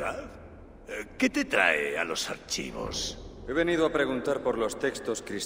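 A deep-voiced man answers calmly.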